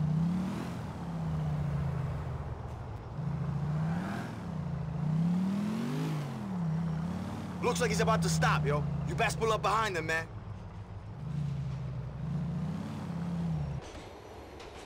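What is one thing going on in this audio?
A pickup truck engine hums and revs while driving.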